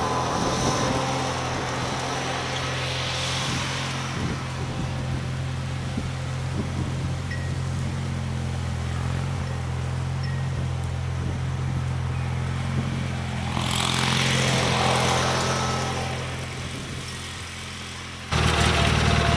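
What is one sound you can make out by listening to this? A small engine hums steadily at a distance.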